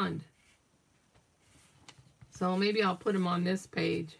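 A page of a book turns with a soft paper rustle.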